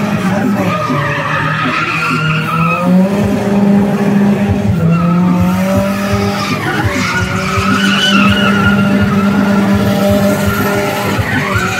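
A small car's engine revs hard near the limiter.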